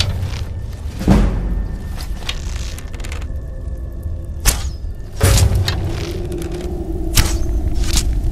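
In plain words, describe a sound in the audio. A bowstring twangs sharply as arrows are shot.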